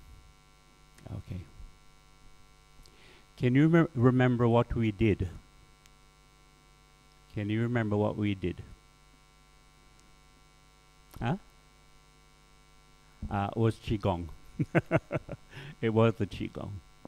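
A middle-aged man speaks emphatically into a close microphone, in bursts with pauses.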